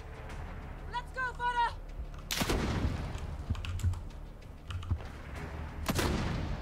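A rifle fires in short bursts of gunshots.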